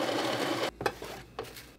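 A coffee grinder whirs briefly.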